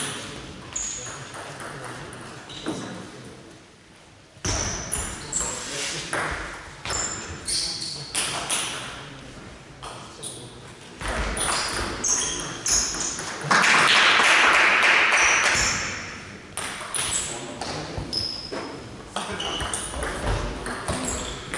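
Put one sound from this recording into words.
Footsteps echo across a large hall floor.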